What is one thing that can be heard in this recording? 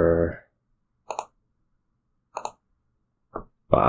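Short card-snapping sounds come from a computer card game.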